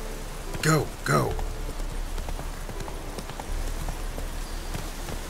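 A horse's hooves thud steadily at a gallop.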